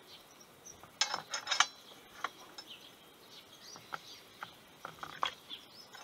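A metal stand rattles and clicks as it is handled.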